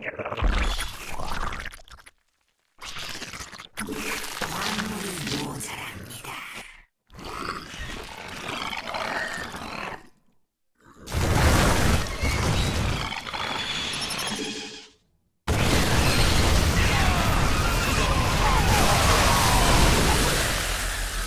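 Video game gunfire and explosions rattle during a battle.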